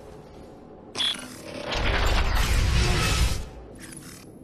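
A sniper rifle fires with a loud, booming blast.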